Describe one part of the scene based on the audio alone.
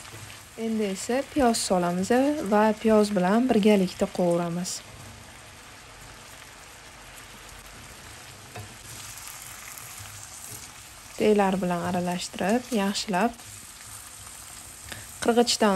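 Meat sizzles and bubbles in a frying pan.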